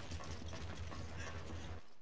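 Footsteps thud on a metal deck.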